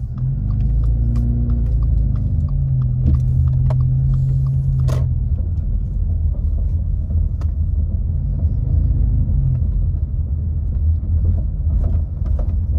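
Tyres rumble on the road surface.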